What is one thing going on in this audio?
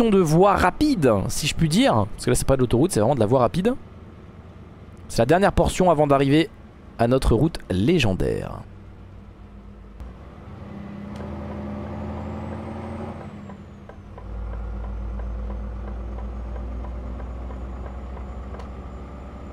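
A truck engine hums steadily, growing louder near the end.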